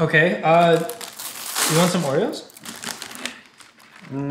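A plastic wrapper crinkles as hands open a packet.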